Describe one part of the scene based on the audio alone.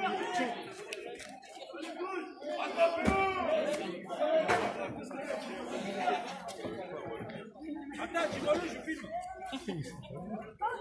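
A crowd of young people talks and shouts excitedly nearby, outdoors.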